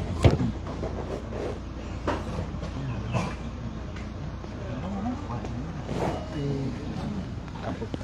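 A man talks outdoors in conversation.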